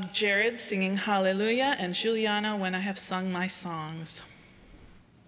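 A woman sings clearly into a microphone in an echoing hall.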